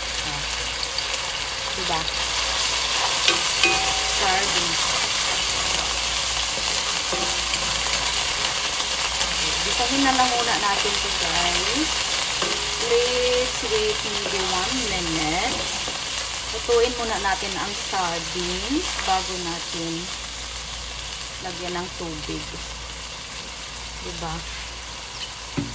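Food sizzles and crackles in a hot pan.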